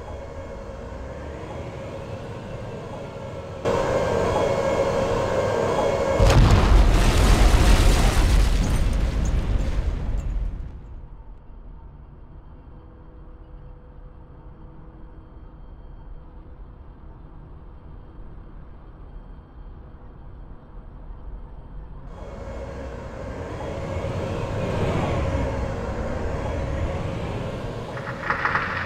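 A tank engine rumbles and clanks.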